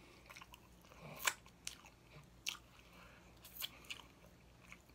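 A man smacks his lips and licks his fingers.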